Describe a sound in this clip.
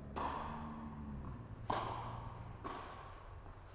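Tennis balls are struck with rackets, echoing in a large hall.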